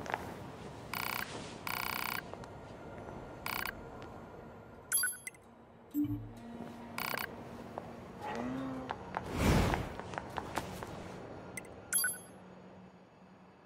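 Short electronic menu chimes beep.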